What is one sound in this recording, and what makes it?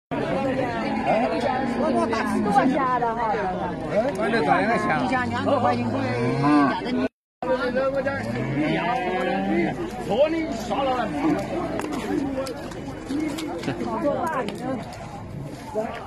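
Several men talk loudly and with animation close by.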